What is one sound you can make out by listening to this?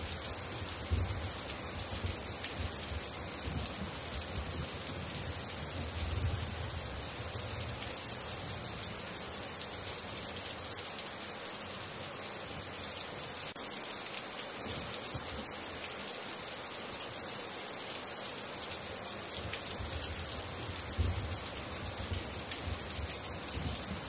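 Heavy rain pours steadily and splashes on the ground.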